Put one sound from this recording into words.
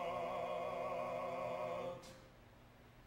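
A man sings a long, wavering note in a large hall, then stops abruptly.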